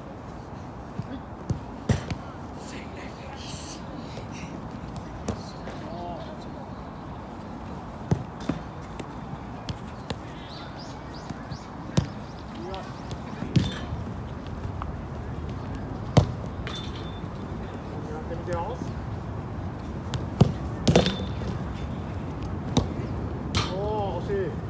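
Soccer balls thump as they are kicked on artificial turf.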